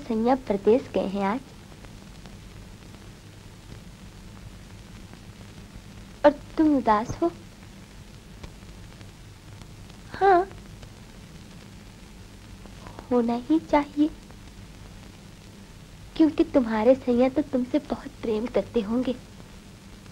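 A young woman speaks softly, in short lines with pauses.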